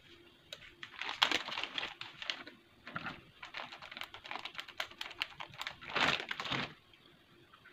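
A plastic bag crinkles and rustles.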